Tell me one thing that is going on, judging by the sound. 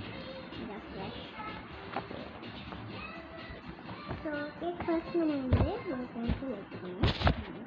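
A young girl speaks close by, reading out.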